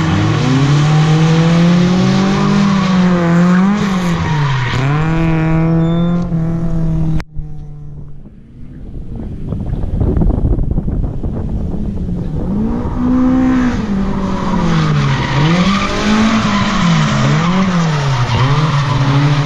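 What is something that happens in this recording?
A car engine revs hard and loud, rising and falling in pitch.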